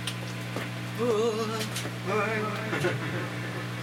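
A man sings with vibrato into a microphone.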